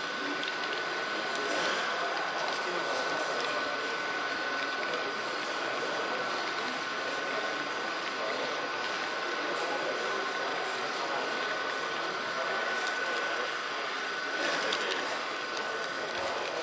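A model train rumbles steadily along the rails.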